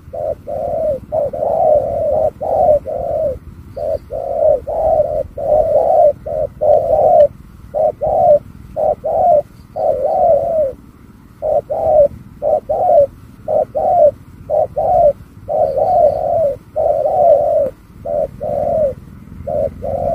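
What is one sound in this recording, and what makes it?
A bird calls over and over in short, low hooting bursts, outdoors.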